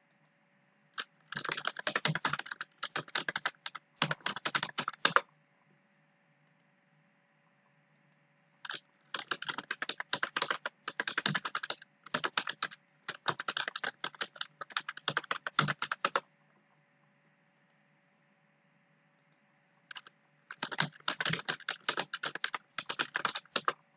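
Computer keys clatter rapidly in short bursts of typing.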